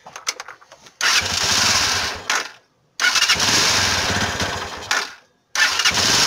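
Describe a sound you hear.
A motorcycle engine starts up and cuts out twice.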